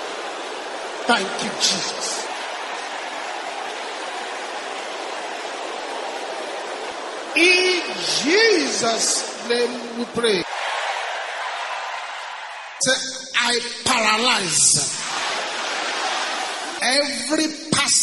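A man preaches with fervour, heard through a microphone.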